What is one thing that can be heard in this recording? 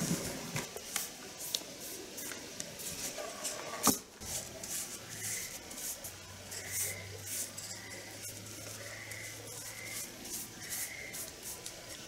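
A paintbrush brushes and taps lightly against wood.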